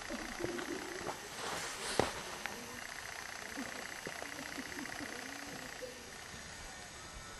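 Wind blows softly across open ground.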